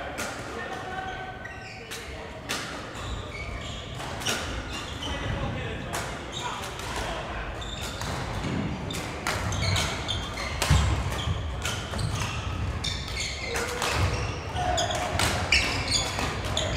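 Shoes squeak on a wooden floor.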